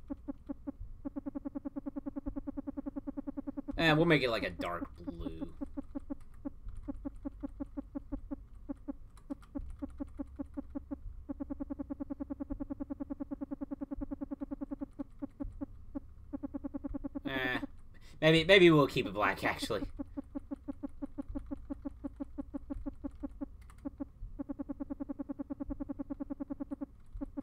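A game menu beeps rapidly as a value ticks up and down.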